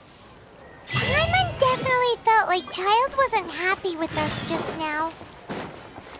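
A bright, tinkling musical jingle plays.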